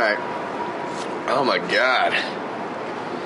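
A young man coughs and gasps after drinking.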